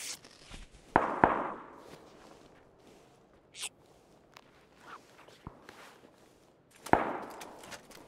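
Rifle shots crack loudly and echo away.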